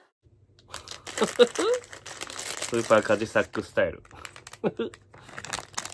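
A plastic wrapper crinkles as it is torn open.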